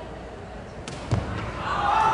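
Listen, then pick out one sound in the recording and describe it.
A foot kicks a ball with a sharp thud.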